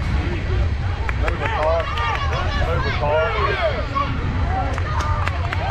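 Children shout and cheer excitedly outdoors.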